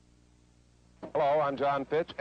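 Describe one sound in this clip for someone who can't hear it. A man speaks calmly and clearly, as if addressing an audience, heard through an old recording.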